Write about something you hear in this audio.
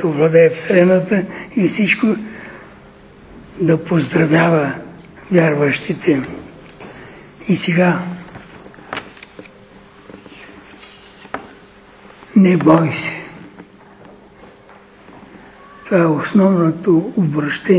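An elderly man speaks with animation in bursts, with pauses between phrases.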